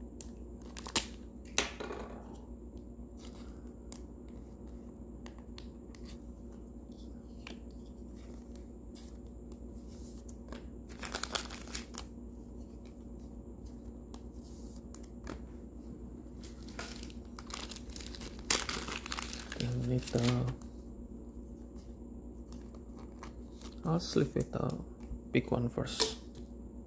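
Cards tap and slide on a hard counter.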